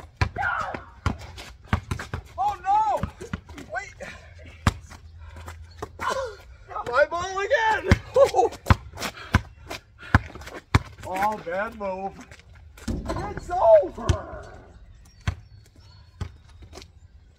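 A basketball bounces repeatedly on asphalt outdoors.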